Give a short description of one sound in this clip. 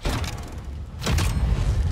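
Footsteps thump quickly across a hard floor.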